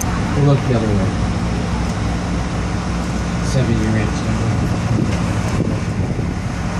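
Wind rumbles steadily outdoors.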